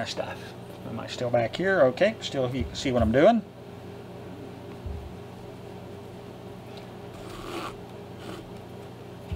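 Thread rasps softly as it is pulled through leather.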